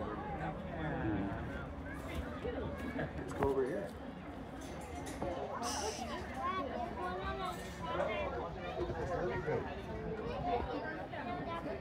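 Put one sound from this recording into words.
Young children chatter and call out nearby, outdoors.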